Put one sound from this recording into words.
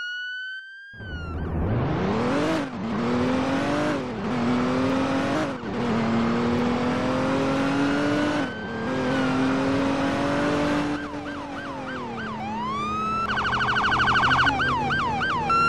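A car engine revs up and climbs through the gears.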